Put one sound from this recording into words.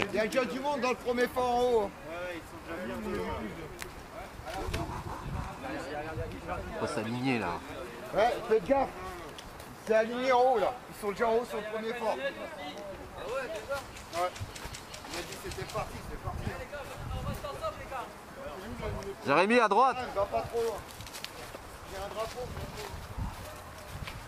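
A young man talks loudly close by.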